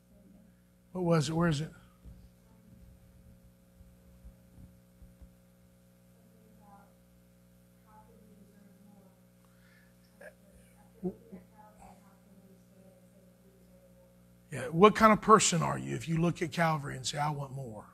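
A man speaks through a microphone and loudspeakers in a large room, pausing between phrases.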